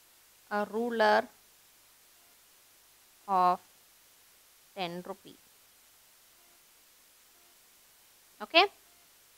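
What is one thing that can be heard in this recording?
A woman speaks calmly in short phrases into a close microphone, with long pauses between.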